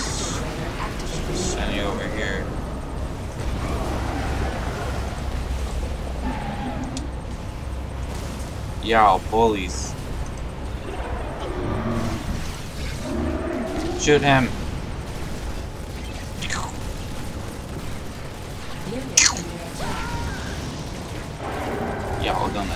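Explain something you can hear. A teenage boy talks casually into a close microphone.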